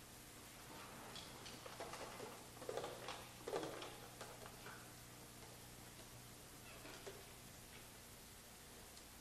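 Drums and cymbals clatter sparsely.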